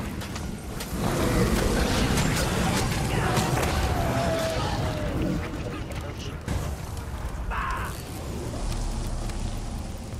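Blades clash in a busy fight.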